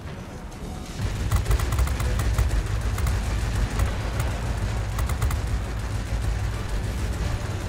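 Aircraft machine guns fire in rapid bursts.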